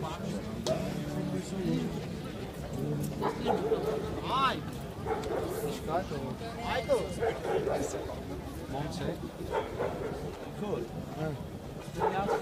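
A crowd of people talks and calls out nearby.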